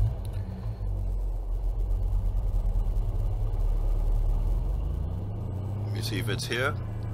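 A pickup truck engine idles with a low, steady rumble.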